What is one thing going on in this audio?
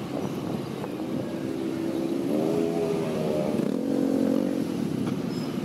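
Nearby motorbike engines rumble and rev in traffic.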